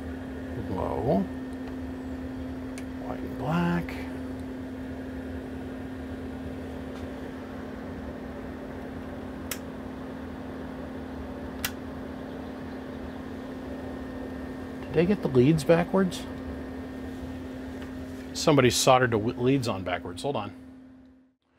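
An amplifier hums steadily.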